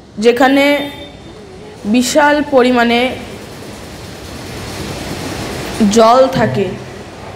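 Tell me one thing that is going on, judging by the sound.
A boy chants in a sustained, singing voice through a microphone, in short phrases with pauses.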